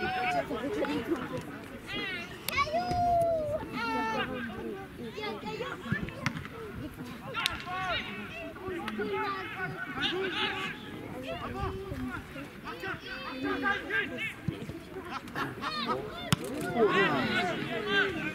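A football thuds as players kick it in the distance.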